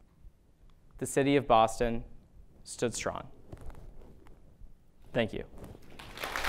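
A young man speaks calmly into a microphone in a large hall.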